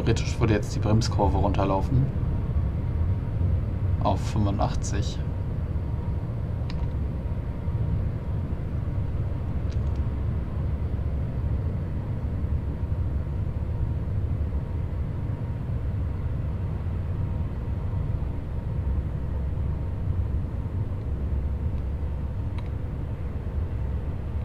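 An electric multiple-unit train rumbles along the track.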